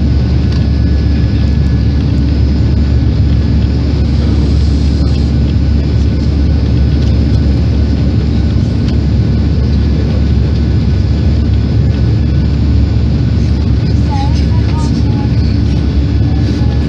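An aircraft's engines roar steadily from inside the cabin.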